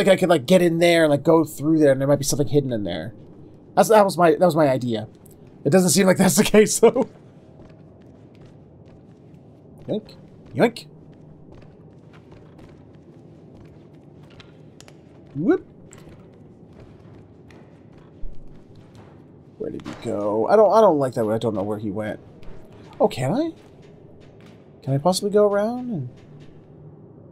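A man talks with animation into a close microphone, in bursts with pauses.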